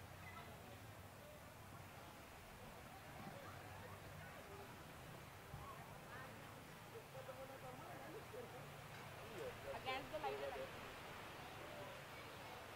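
Young girls talk and call out nearby, outdoors.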